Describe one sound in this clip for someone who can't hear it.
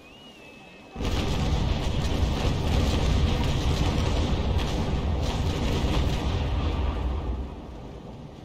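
A cannon broadside booms and rumbles loudly.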